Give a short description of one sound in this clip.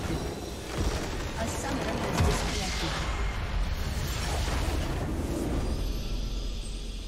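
A huge rumbling explosion bursts and crackles.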